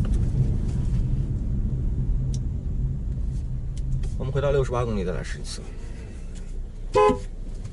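A car engine hums steadily with road rumble from inside the cabin.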